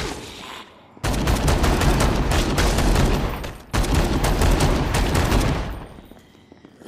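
Gunshots fire in rapid, loud bursts.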